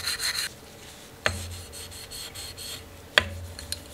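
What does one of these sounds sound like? A cloth rubs against a metal surface.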